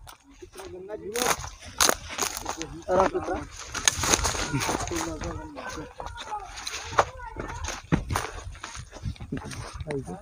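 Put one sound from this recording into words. Footsteps crunch on a slope.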